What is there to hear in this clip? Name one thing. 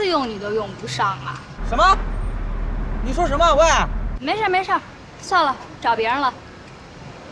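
A young woman talks on a phone with surprise, then calmly.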